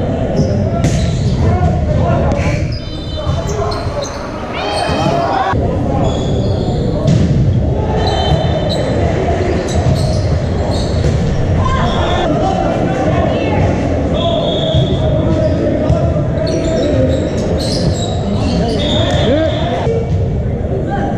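Many voices of players and onlookers chatter and call out in a large echoing hall.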